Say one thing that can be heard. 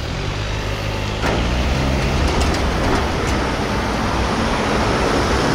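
A trailer rattles as a car tows it past.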